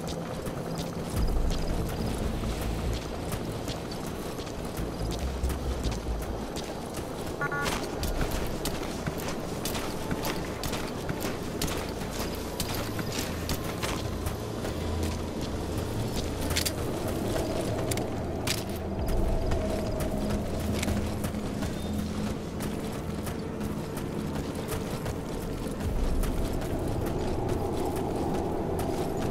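Footsteps crunch on dry ground and gravel.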